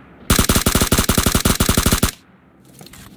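A rifle fires a fast burst of loud shots.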